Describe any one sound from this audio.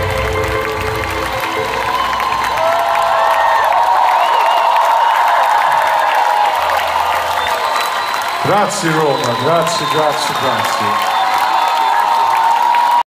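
A band plays loud live music through large loudspeakers, heard from within a crowd.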